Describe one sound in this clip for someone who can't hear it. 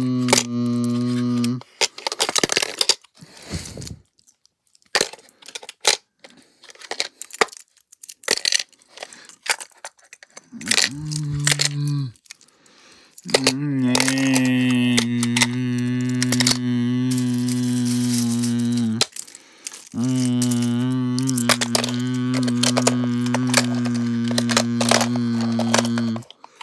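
Small plastic toy trains click and rattle against a plastic case.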